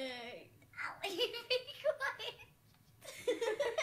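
Two young girls giggle.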